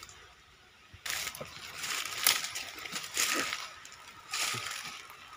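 Dry leaves crunch and rustle underfoot.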